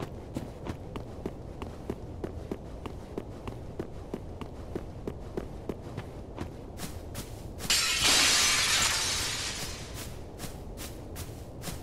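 Armored footsteps run steadily over stone.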